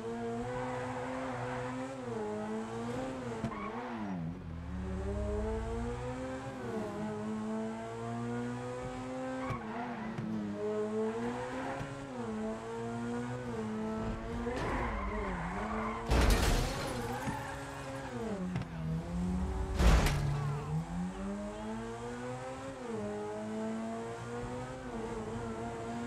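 A car engine hums and revs, rising and falling in pitch as gears shift.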